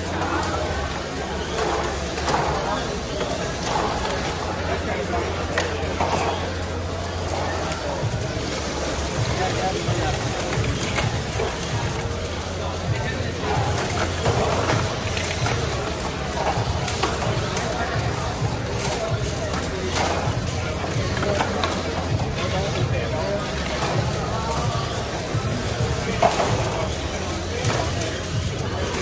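Small robot motors whir and whine as they drive around.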